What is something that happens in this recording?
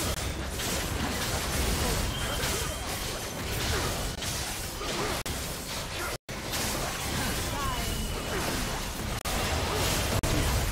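Magic blasts and clashing hits crackle and whoosh in a hectic fight.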